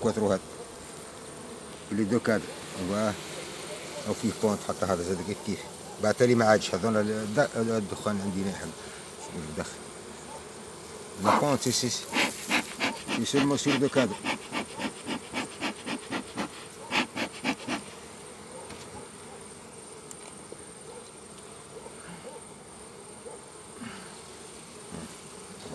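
Wooden hive frames scrape and knock as they are pried loose.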